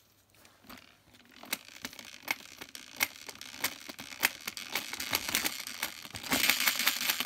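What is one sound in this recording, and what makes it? An electric motor whirs and clicks as a toy car's wheel spins fast.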